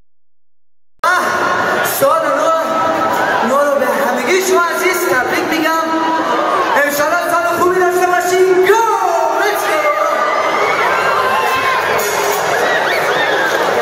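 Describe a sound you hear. A live band plays loud music in a large echoing hall.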